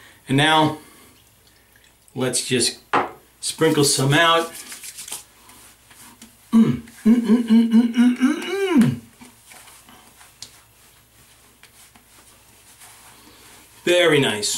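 A middle-aged man speaks expressively, close by, in short bursts.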